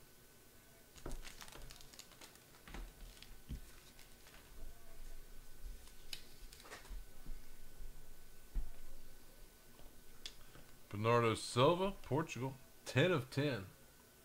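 Plastic wrapping crinkles and cards click as hands handle them up close.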